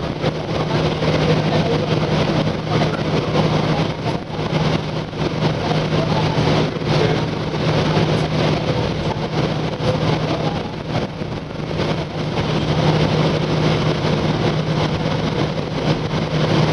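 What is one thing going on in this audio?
A vehicle rumbles steadily as it travels, with a low droning hum.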